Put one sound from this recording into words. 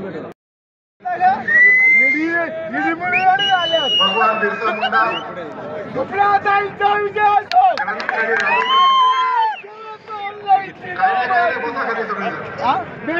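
A man sings loudly close by.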